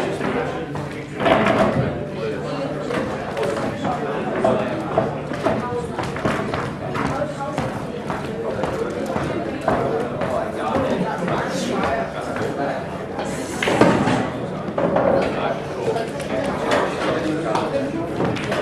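Pool balls click together as they are packed into a rack.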